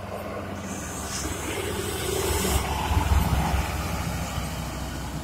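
A bus engine rumbles deeply as the bus drives past close by.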